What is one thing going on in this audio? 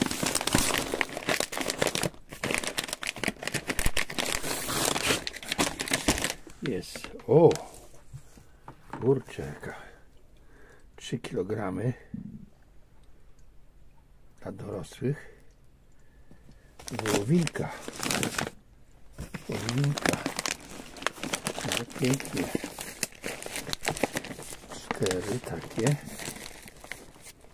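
Plastic bags and paper rustle and crinkle close by as they are handled.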